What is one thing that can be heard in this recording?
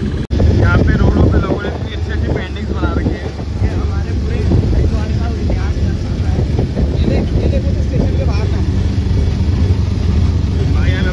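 A vehicle engine rumbles steadily while riding along a road.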